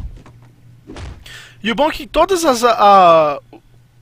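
A wooden door bangs open.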